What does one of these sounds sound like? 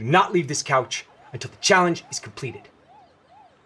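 A young man speaks angrily up close.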